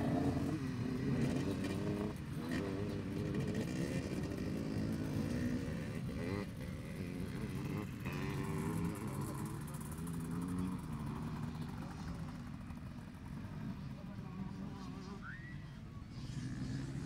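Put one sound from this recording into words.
Motorbike engines rev and roar across an open field.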